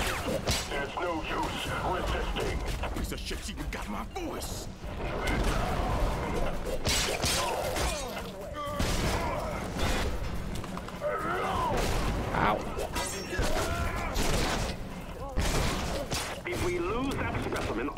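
Gunfire and impacts crack in quick bursts.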